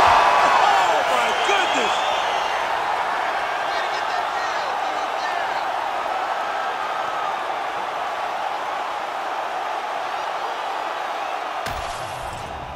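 A large crowd cheers and roars loudly in a big arena.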